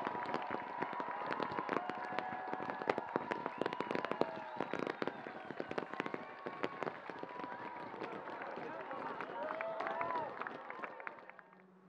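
Fireworks whistle as they shoot up.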